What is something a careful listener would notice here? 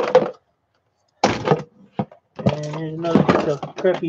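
A plastic tub rattles and knocks as it is handled.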